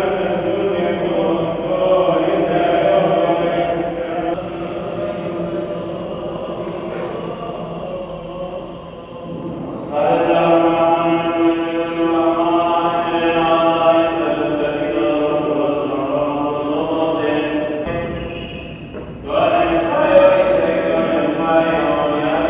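A choir of men chants slowly in a large echoing hall.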